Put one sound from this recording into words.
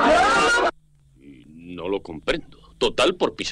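A man exclaims in a startled, cartoonish voice.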